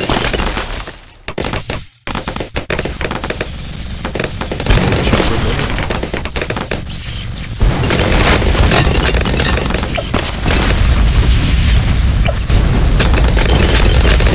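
Cartoon pops and bursts go off rapidly and without pause.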